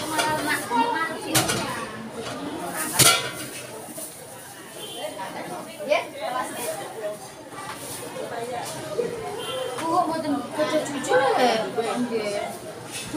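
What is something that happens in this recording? Plastic foam nets rustle and crinkle as hands handle fruit.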